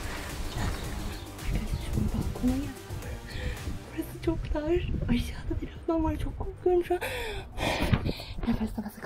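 A girl laughs and talks close to the microphone.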